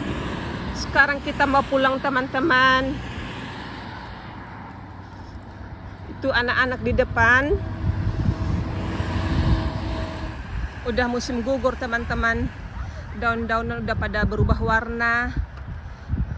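A woman calls out loudly close by in a sing-song voice.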